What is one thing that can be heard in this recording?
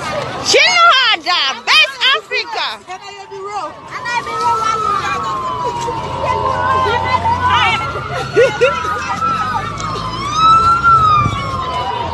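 A crowd of people call out and talk outdoors.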